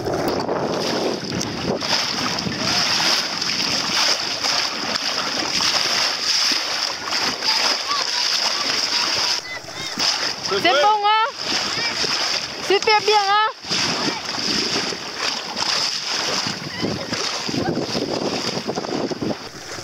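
Small waves slap and splash against a boat.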